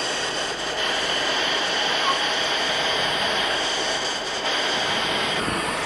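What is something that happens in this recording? A steam locomotive's rods and wheels clank as they turn.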